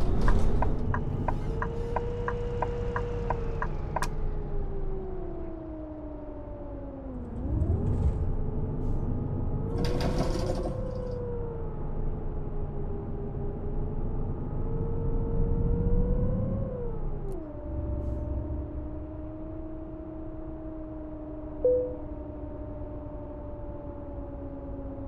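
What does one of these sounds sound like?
A bus engine hums steadily, its pitch rising and falling as it changes gears.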